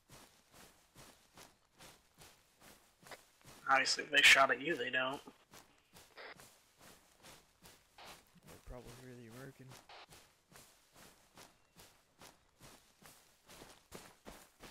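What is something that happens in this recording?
Footsteps crunch steadily through dry undergrowth.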